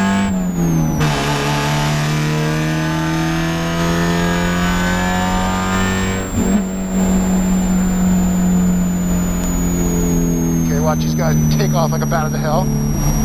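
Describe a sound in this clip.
A four-cylinder Spec Miata race car engine roars at full throttle from inside the car.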